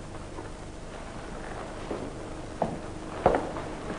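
Boots thump on a wooden floor as a man walks.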